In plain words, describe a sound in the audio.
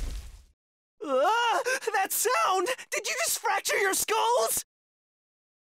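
A young man cries out in shrill alarm.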